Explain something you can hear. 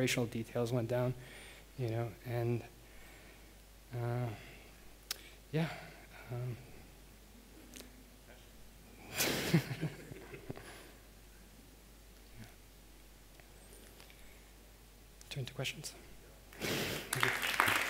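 A man speaks slowly with pauses through a microphone in a large echoing hall.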